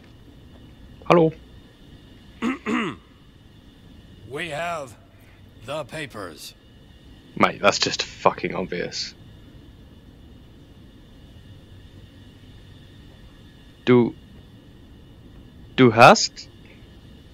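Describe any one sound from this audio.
A man speaks in short, stern phrases nearby.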